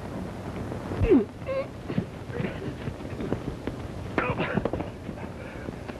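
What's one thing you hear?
Two men scuffle as they struggle.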